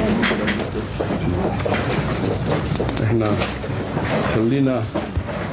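An elderly man speaks calmly and formally into a microphone.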